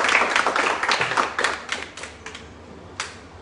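An audience claps in a room.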